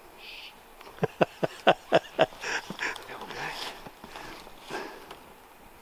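Climbing gear clicks and knocks against a tree trunk.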